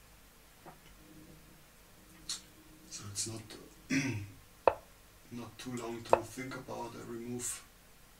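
A middle-aged man commentates calmly into a microphone.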